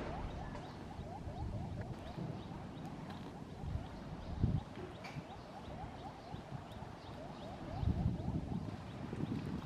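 Small monkeys scamper and scuffle on stone.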